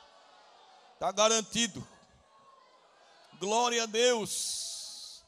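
A man speaks loudly and with animation into a microphone, in short bursts.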